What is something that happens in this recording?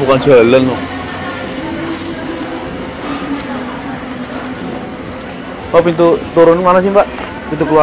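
A crowd murmurs in the background of a large indoor space.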